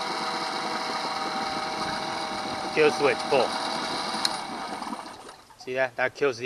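A small outboard motor runs loudly with a steady drone, then sputters and stops.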